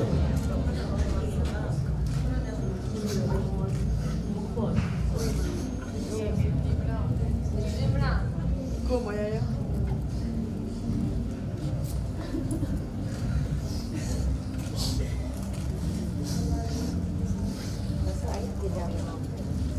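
A crowd of women chatters and murmurs nearby.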